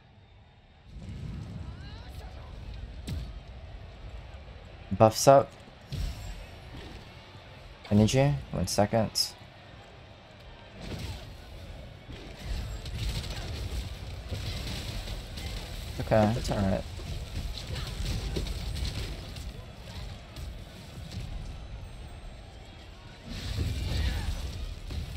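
Spell blasts boom and crackle in a video game.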